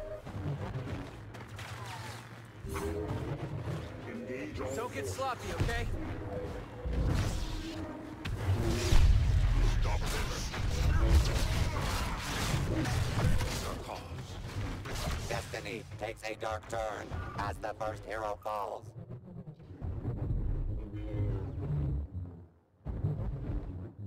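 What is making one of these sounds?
Lightsabers hum and swish.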